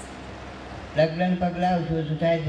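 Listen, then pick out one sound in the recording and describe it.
An elderly man speaks into a microphone, heard through a loudspeaker.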